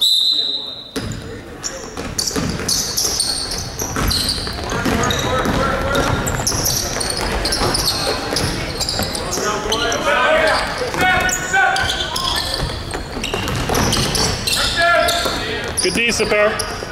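Players and spectators call out in the gym.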